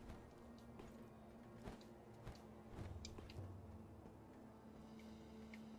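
Footsteps tap on roof tiles.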